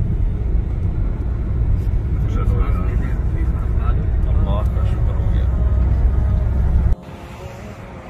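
A car drives along a road with a steady low rumble.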